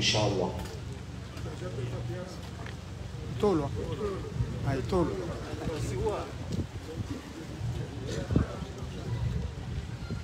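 A man speaks through a microphone and loudspeaker outdoors.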